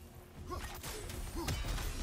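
A heavy axe swings and strikes in a fight.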